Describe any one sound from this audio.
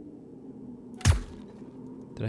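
A pistol fires a single sharp shot.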